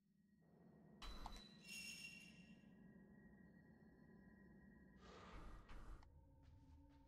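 Menu chimes blip in quick succession.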